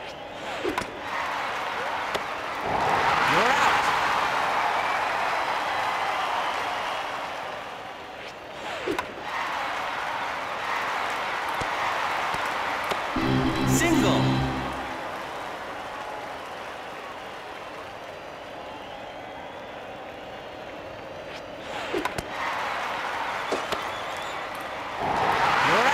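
A stadium crowd cheers and murmurs throughout.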